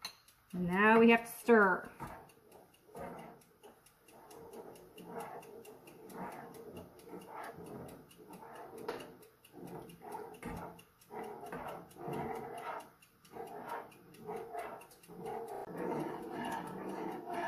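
A spoon scrapes and stirs thick liquid in a metal pot.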